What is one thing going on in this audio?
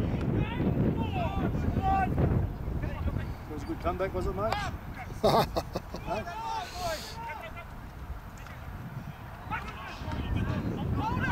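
Young men shout and call out across an open field at a distance.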